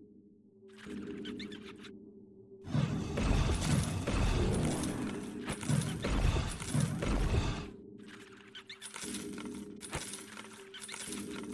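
Game spell effects crackle and whoosh in bursts.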